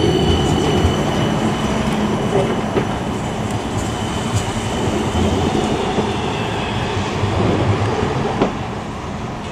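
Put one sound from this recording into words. A tram rumbles past close by on its rails.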